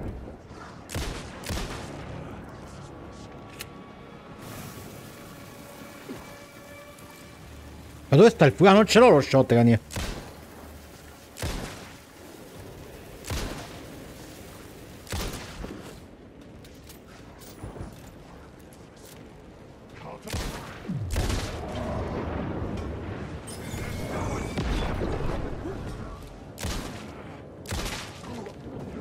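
Gunshots fire in sharp single bangs.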